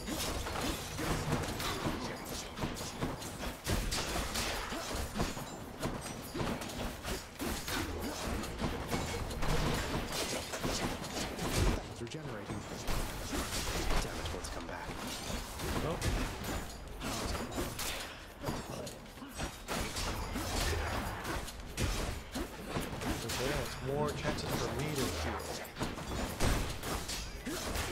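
Game weapons slash and clang in rapid bursts.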